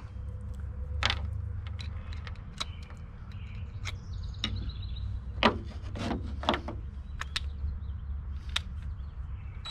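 Small pieces of hardware click and tap on a wooden board.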